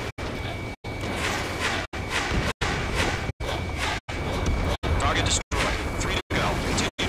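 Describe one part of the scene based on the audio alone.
Missiles whoosh away in quick bursts.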